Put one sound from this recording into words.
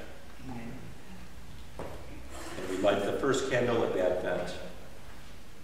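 An elderly man speaks calmly in an echoing hall.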